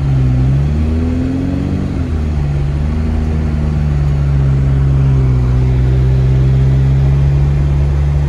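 Windshield wipers swish across the glass.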